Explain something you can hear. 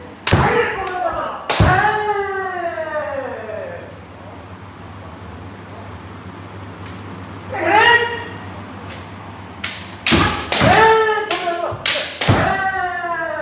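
Bamboo swords strike with sharp cracks.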